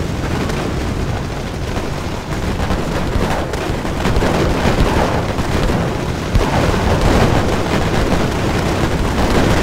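A rifle fires sharp shots close by.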